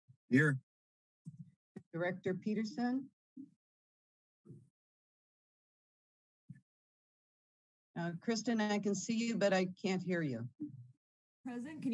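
An older woman speaks calmly over an online call.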